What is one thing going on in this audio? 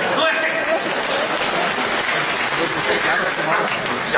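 A middle-aged man laughs into a microphone.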